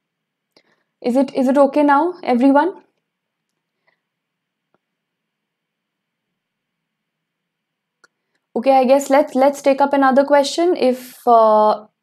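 A young woman speaks calmly and clearly into a close microphone, pausing between phrases.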